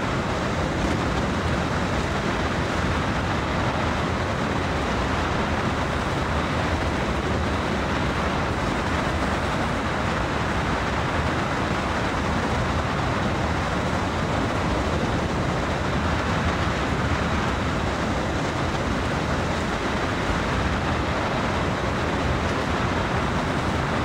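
Train wheels clatter steadily over the rails.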